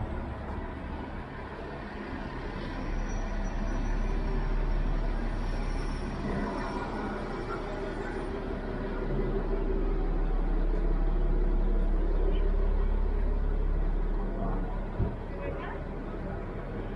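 Street traffic rumbles steadily outdoors.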